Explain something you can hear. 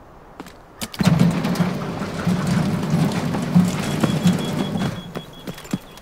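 Footsteps clang and rumble on a metal floor in an echoing tunnel.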